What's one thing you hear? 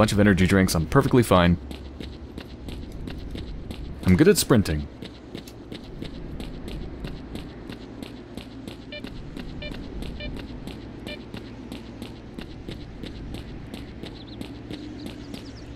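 Footsteps crunch steadily on a stony path.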